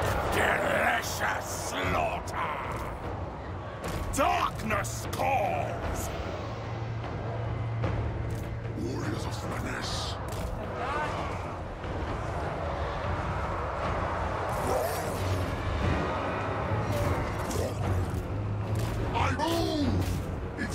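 A large battle rages with clashing weapons and distant roars.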